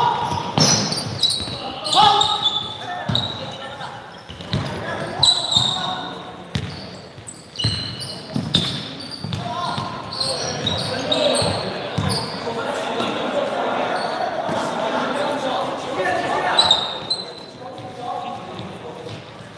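Young people shout and chatter in a large echoing hall.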